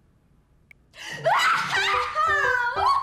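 A young woman shouts with joy.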